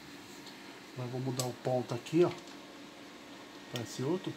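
A sewing machine stitches in short, rapid bursts.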